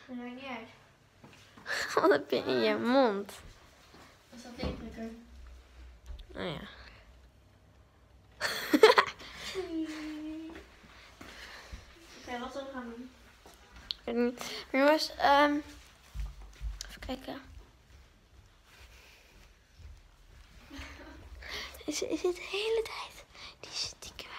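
A young girl talks and sings with animation close by.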